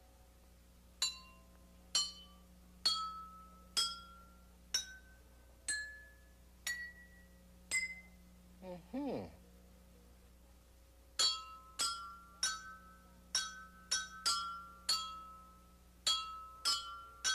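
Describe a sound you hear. Water glasses ring out one by one in a rising scale as they are struck.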